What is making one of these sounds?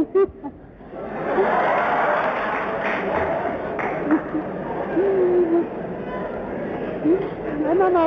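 A large audience laughs and cheers.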